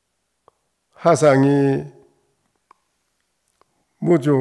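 An elderly man speaks slowly and calmly into a microphone.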